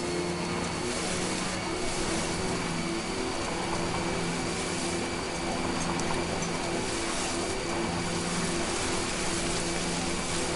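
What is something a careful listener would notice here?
A vehicle's engine hums steadily as it drives over rough ground.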